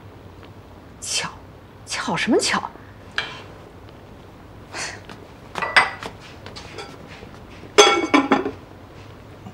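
A middle-aged woman speaks sharply, with animation.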